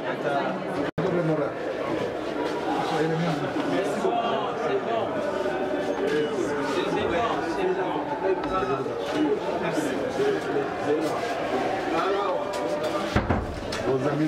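Several men talk over each other in a crowded room.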